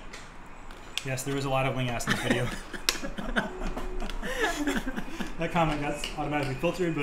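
A man laughs nearby.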